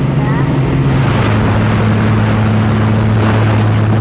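Wind rushes loudly through an open aircraft door.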